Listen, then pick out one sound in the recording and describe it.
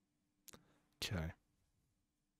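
A man speaks briefly and quietly into a close microphone.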